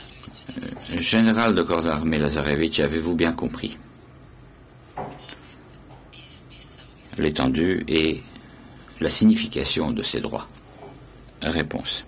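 An older man reads out steadily into a microphone.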